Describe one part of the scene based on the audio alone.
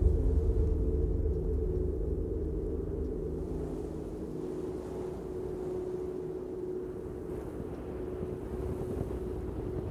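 Strong wind roars through a snowstorm.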